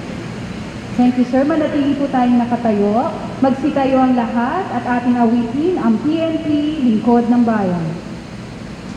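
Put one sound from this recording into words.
A man calls out long, drawn-out commands in a large echoing space.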